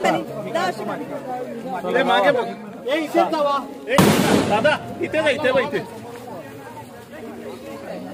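Men talk with animation nearby, outdoors.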